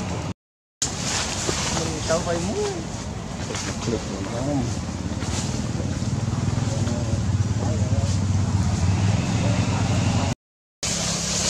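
Branches and leaves rustle as a monkey climbs through a tree.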